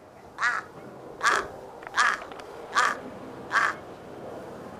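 A crow caws several times.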